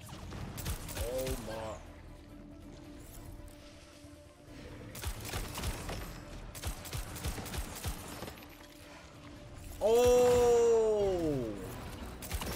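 A young man exclaims loudly into a microphone.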